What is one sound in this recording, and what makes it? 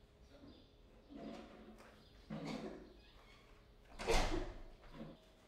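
A door handle rattles and a door clicks open.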